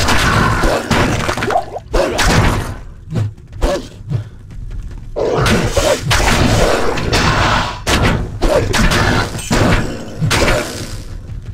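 Monsters shriek and groan.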